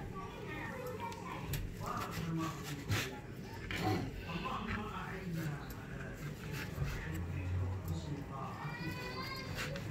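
A knife cuts through a soft rolled flatbread on a plastic board.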